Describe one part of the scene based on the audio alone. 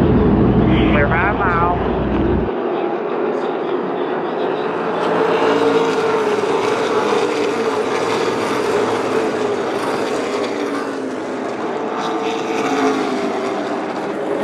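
Race car engines roar loudly as they speed around a track.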